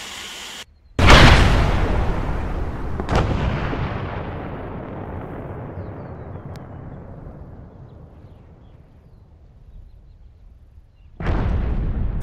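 A huge explosion booms and slowly rumbles away.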